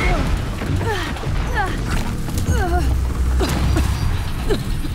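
A heavy metal body crashes down and clatters.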